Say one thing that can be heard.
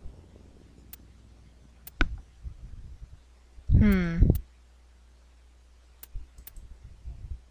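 Short electronic beeps sound as menu options are selected.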